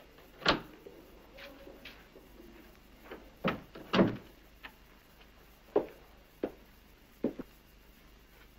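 Footsteps tread slowly across a hard floor.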